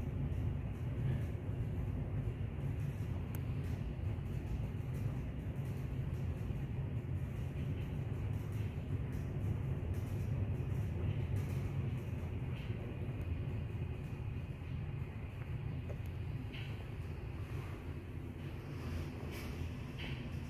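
An elevator hums and rumbles steadily as it travels down.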